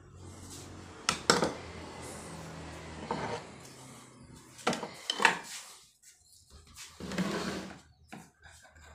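Metal scrapes against wood.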